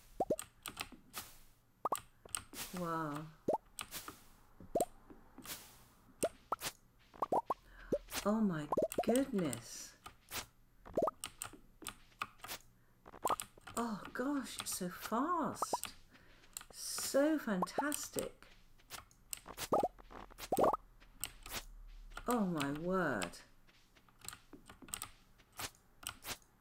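Short soft pops sound again and again as crops are picked.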